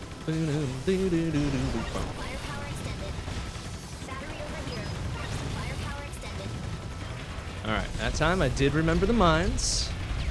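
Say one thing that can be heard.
Rapid video game gunfire and explosions crackle.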